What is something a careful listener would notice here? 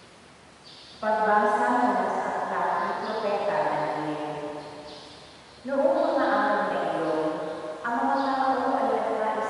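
A woman sings through a loudspeaker in a large echoing hall.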